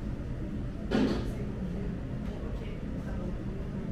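Beer pours from a bottle into a glass and foams.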